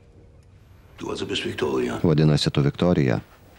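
A young girl speaks nearby.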